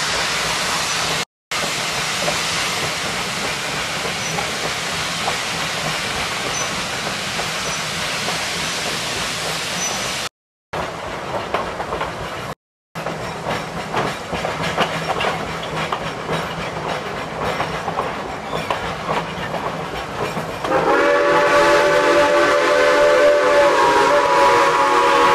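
A steam train's carriage rolls and rattles along the rails.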